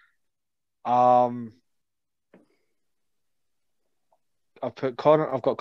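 A young man speaks close to a microphone, in short bursts with pauses.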